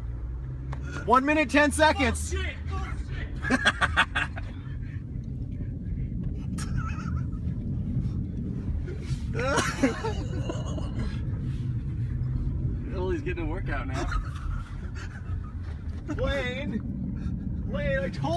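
A man talks loudly and with animation close by, inside a car.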